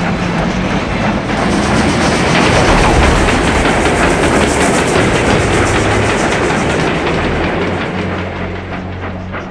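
A steam train rumbles and chugs along the tracks.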